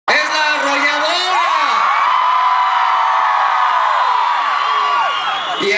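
A large crowd screams and cheers loudly and close by.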